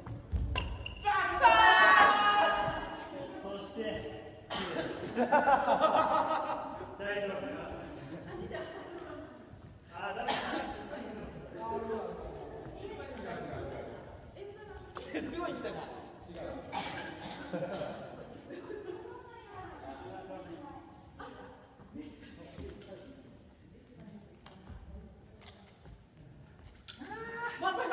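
Young men and women call out and talk loudly, echoing in a large hall.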